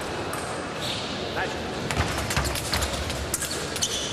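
Fencers' shoes squeak and thud on the floor.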